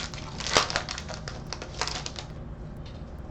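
Foil card wrappers crinkle and rustle close by.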